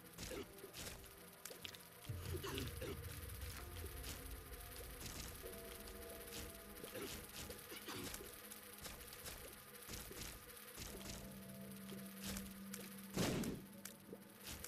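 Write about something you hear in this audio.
Quick shots pop and splat repeatedly in a game.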